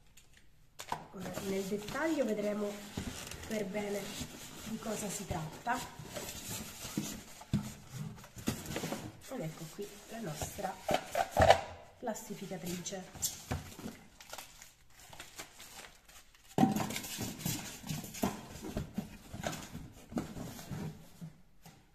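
Cardboard and plastic packaging rustle and crinkle as it is handled.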